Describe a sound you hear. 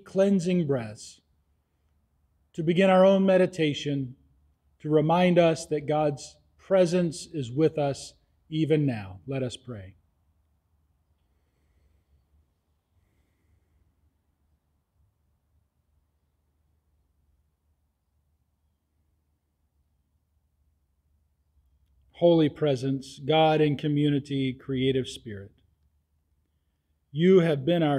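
A middle-aged man speaks calmly and with feeling into a microphone, pausing now and then.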